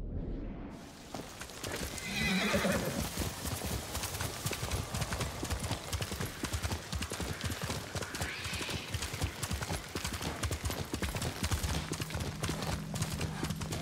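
A horse's hooves gallop steadily over a dirt path.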